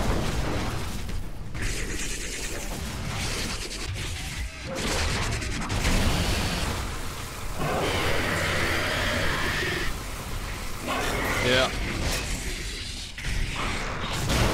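A low mechanical rumble goes on steadily.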